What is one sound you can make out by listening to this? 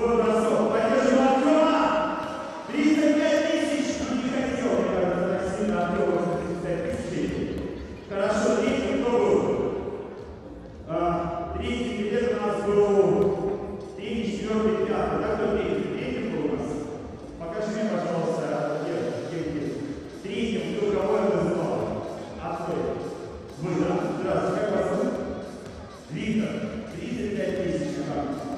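A man speaks with animation through a microphone, his voice echoing in a large hall.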